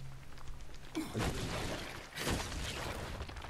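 A monster snarls and roars close by.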